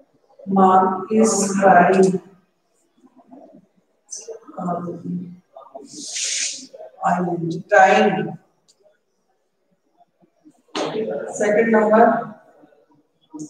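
A woman speaks slowly and clearly, as if teaching, close by.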